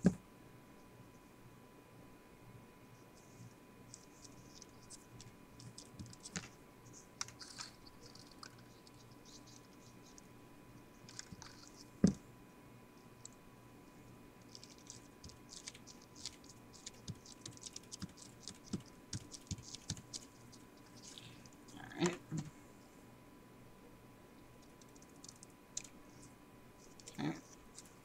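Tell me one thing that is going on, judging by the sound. Paper crinkles and rustles under hands.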